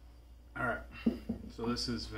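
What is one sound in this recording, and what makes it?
A metal drink can is set down on a wooden table with a light knock.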